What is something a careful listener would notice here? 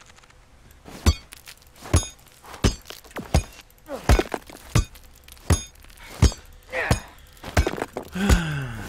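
A hammer strikes rock with sharp knocks.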